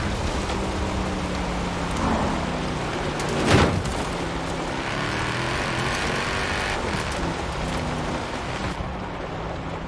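Tyres crunch and rumble over gravel.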